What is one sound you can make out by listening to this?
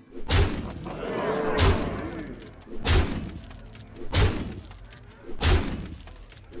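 Magical game effects whoosh and chime.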